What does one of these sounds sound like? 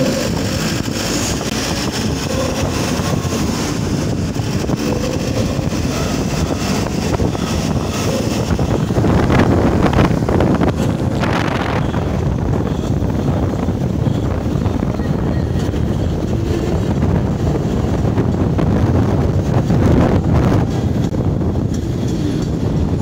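A vehicle's engine drones steadily while driving.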